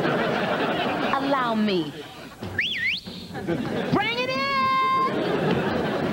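A woman laughs and talks loudly with animation.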